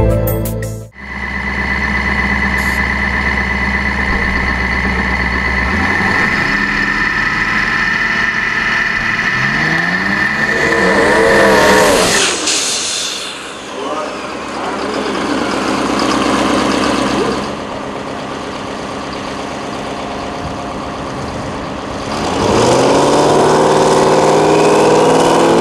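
A big diesel racing engine roars loudly close by, revving up and down.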